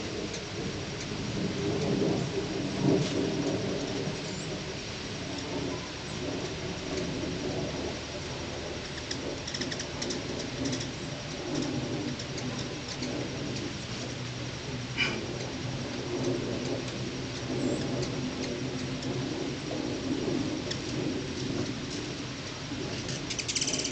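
Hummingbirds' wings hum as they dart around.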